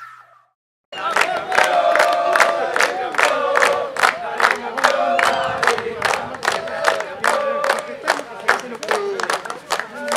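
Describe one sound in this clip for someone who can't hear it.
A crowd of men cheer and shout.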